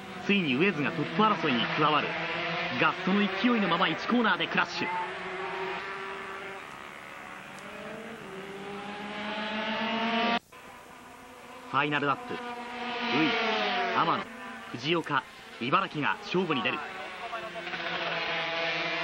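Racing motorcycle engines scream past at high revs, rising and falling as riders shift gears.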